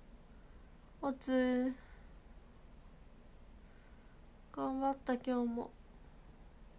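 A young woman speaks softly and briefly, close to a microphone.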